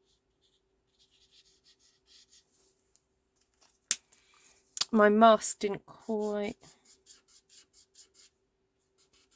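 A felt-tip marker squeaks softly in quick strokes across paper.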